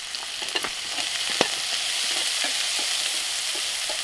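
A spoon scrapes against a frying pan.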